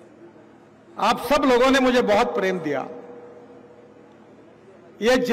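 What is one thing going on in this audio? A middle-aged man speaks with animation into a microphone, heard through loudspeakers.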